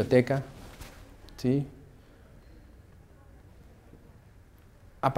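A woman speaks calmly through a microphone.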